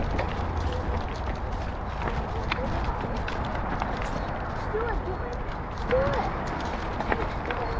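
A bicycle rattles and clatters over loose stones.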